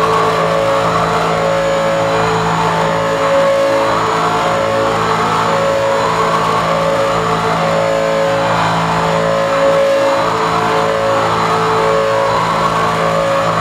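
Electronic synthesizer music plays through loudspeakers, with steady droning tones and a repeating pulsing pattern.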